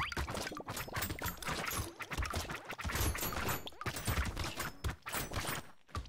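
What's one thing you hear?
Rapid game weapon shots and hit effects crackle constantly.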